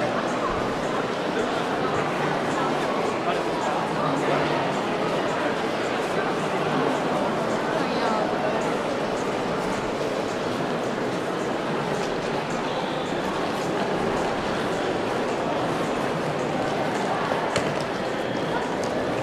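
A large crowd murmurs in a wide echoing hall.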